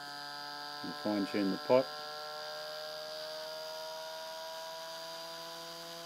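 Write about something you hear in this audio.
A spinning disk hums with a steady high whine that slowly drifts lower.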